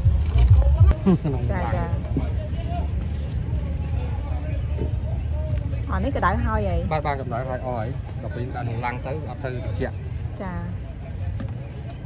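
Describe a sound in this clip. A cardboard box rustles as soft buns are placed inside.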